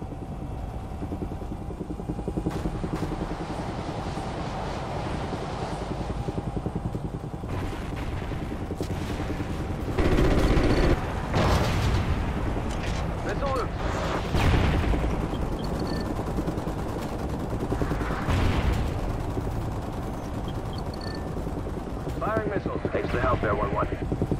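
A helicopter's rotors thump and its engine drones steadily throughout.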